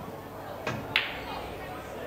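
Pool balls knock together.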